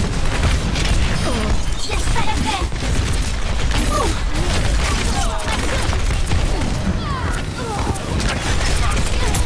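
Electronic zaps and whooshes sweep up and down.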